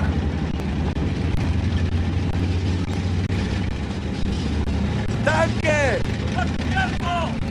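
A heavy tank engine rumbles steadily as the tank rolls forward.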